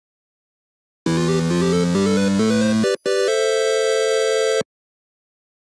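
A short chiptune jingle plays in rising beeps.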